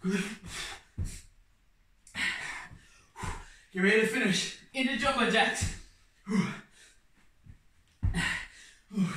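Feet thump softly on a floor mat.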